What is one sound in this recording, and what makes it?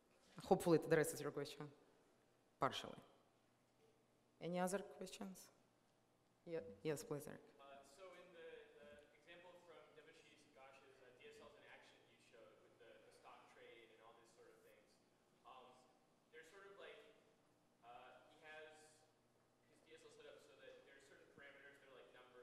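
A young woman speaks calmly through a microphone and loudspeakers.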